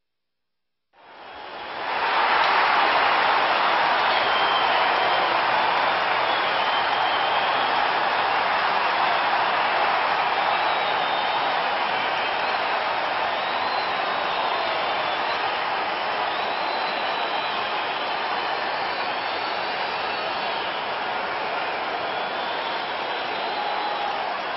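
A large crowd cheers and roars loudly in a big arena.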